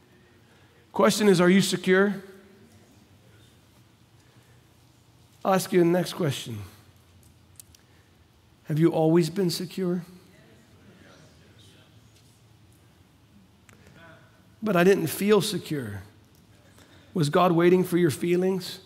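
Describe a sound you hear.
A middle-aged man speaks calmly through a microphone in short phrases with pauses.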